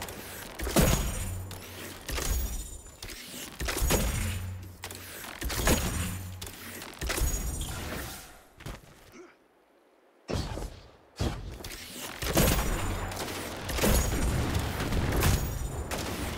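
A heavy weapon fires in repeated loud blasts.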